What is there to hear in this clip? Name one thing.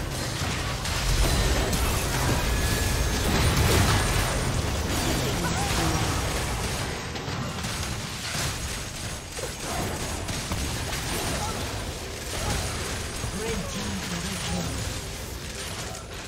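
Game spell effects crackle and burst in a busy fight.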